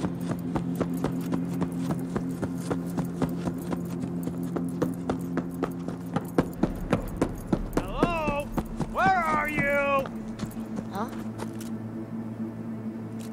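Footsteps tap on pavement at a steady walking pace.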